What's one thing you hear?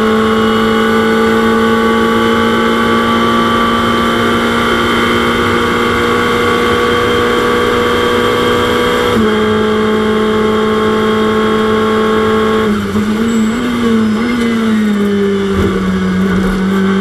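A race car engine drones loudly at high revs, with its pitch dropping in steps as it shifts down.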